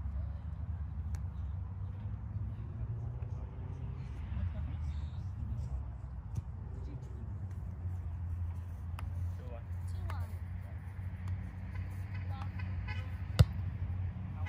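A volleyball is struck with a dull thump.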